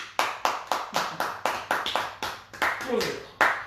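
Several men clap their hands quickly.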